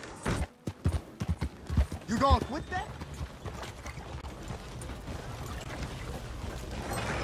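Horse hooves thud on a dirt path.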